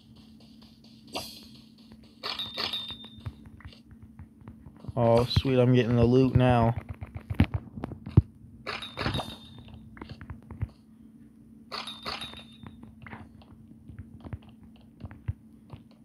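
A pickaxe chips at blocks with short, quick knocks.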